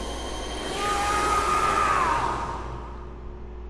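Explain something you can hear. A magical energy burst whooshes loudly and then fades away.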